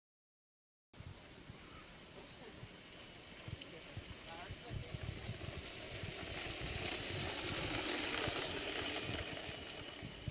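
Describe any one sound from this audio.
Small plastic wheels rumble and rattle on rough pavement, growing louder.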